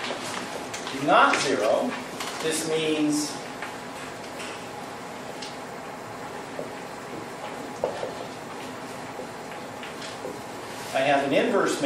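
A man speaks calmly while lecturing.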